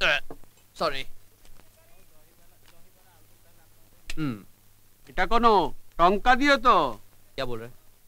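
A middle-aged man speaks loudly and sternly nearby.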